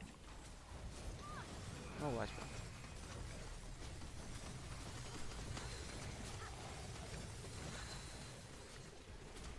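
Blows and impacts thud during combat.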